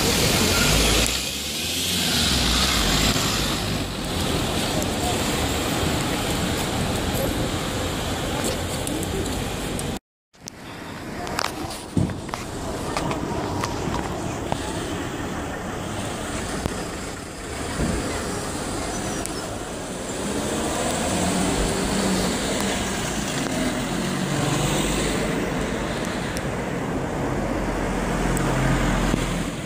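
An ambulance engine rumbles as it drives slowly past.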